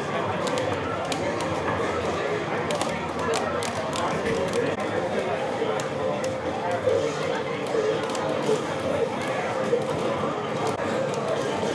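Arcade buttons click and clatter rapidly under a player's fingers.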